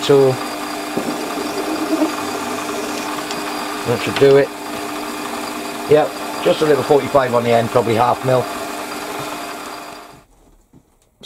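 A lathe's cutting tool scrapes and hisses against metal.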